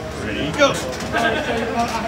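A man speaks through a microphone over the crowd.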